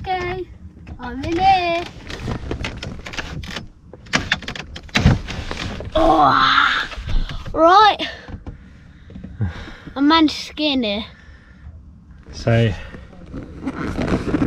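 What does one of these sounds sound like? A boy talks and laughs playfully close by.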